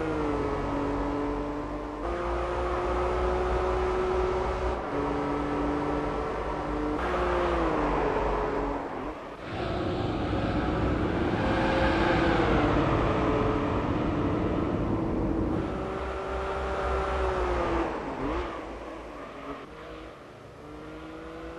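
A car engine roars at high revs, shifting gears as it races.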